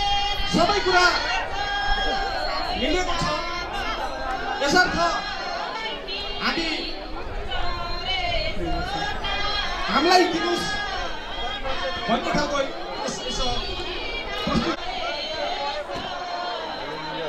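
A group of women sing together in a chant outdoors.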